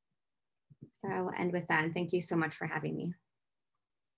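A woman speaks calmly and warmly over an online call.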